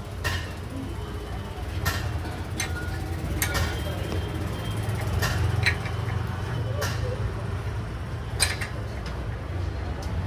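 A wrench clinks and taps against metal parts.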